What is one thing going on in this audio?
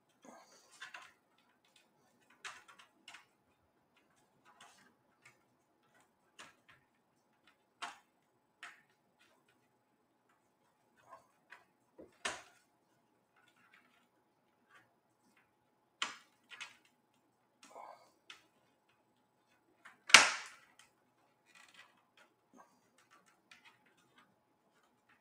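Plastic clicks and snaps as a laptop's bottom cover is pried loose.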